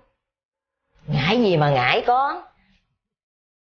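An elderly woman exclaims loudly with animation.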